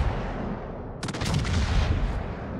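Shells splash heavily into the water.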